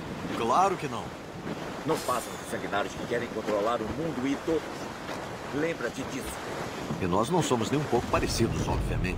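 A middle-aged man talks casually into a microphone.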